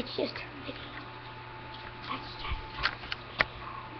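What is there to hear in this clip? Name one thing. A young boy speaks quietly and close by.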